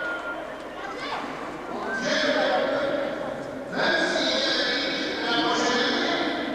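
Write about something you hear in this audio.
A man speaks into a microphone, heard over loudspeakers.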